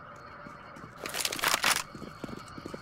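A rifle clicks and rattles as it is handled.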